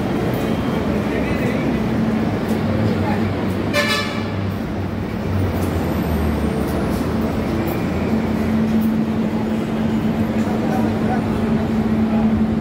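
A train hums steadily at a platform.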